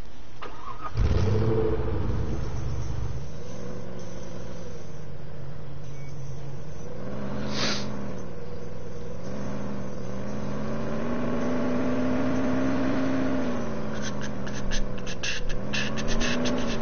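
A car engine starts up and hums, revving now and then.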